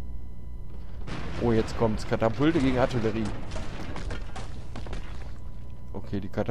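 Battle sounds clash and crackle.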